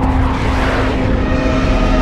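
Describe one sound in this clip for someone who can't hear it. A jet roars overhead.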